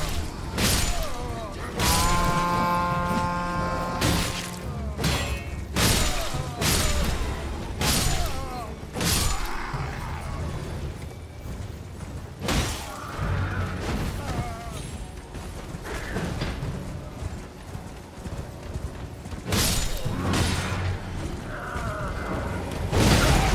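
Sword blows strike and clang sharply against enemies.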